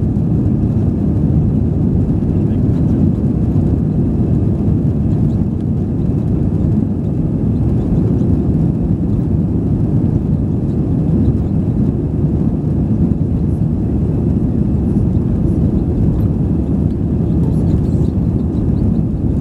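The turbofan engines of an Airbus A320 roar at takeoff power, heard from inside the cabin.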